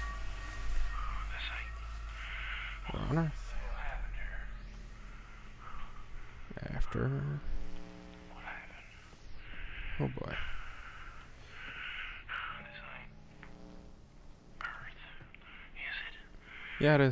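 A young man speaks quietly and hesitantly, close to a microphone.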